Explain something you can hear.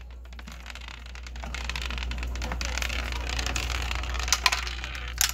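A small ball rolls and rattles down a spiral track.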